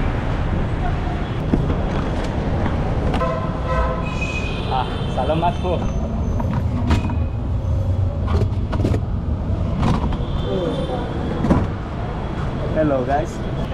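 Plastic crates clatter and knock.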